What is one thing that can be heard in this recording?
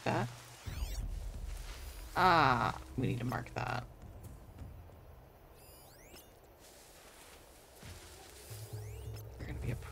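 Electronic scanning chirps sweep up and down in pitch.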